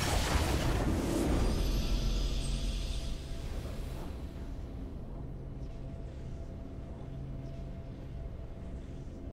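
A triumphant fanfare swells and then slowly fades.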